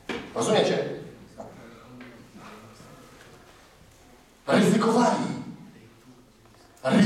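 A man speaks loudly and with animation through a microphone in a large echoing room.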